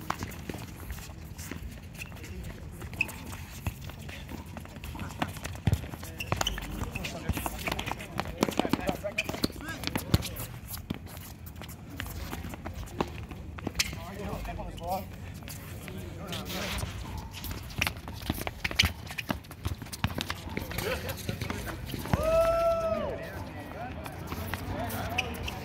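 A ball is kicked with dull thuds on a hard court.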